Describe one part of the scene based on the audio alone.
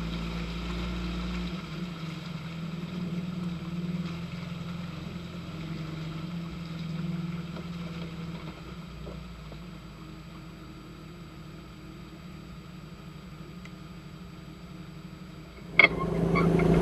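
Tyres squelch and crunch through mud and gravel.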